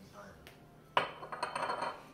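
A glass bottle knocks down onto a stone counter.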